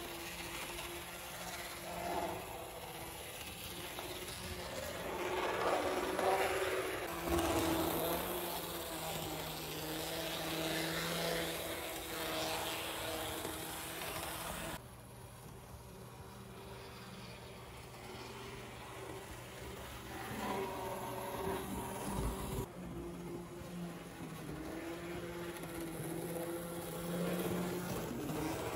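A small electric model train hums and whirs as it rolls along metal tracks.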